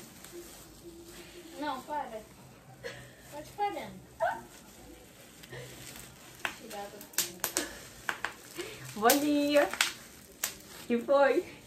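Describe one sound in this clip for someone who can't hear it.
Bubble wrap crinkles and pops in a young woman's hands.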